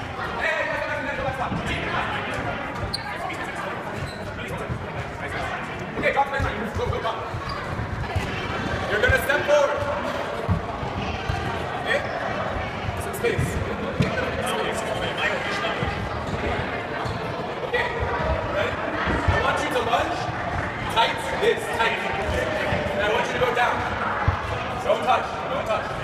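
Young women chatter and call out across an echoing gym.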